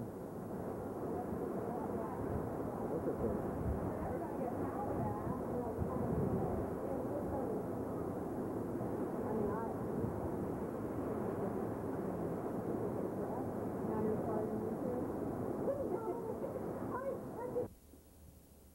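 Gusts of wind buffet the microphone with low rumbling.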